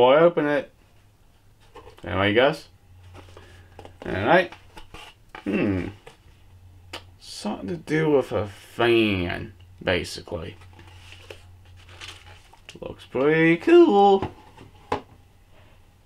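A man talks close by, calmly and with pauses.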